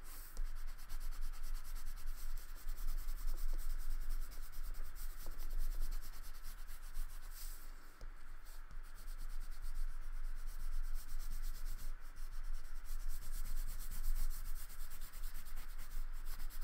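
A crayon scribbles rapidly across paper.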